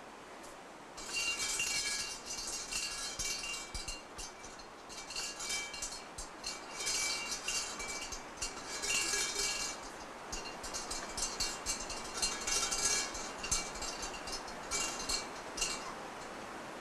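A metal shrine bell rattles and jangles as a rope is shaken.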